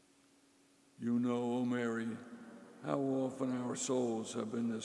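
A man chants into a microphone in a large echoing hall.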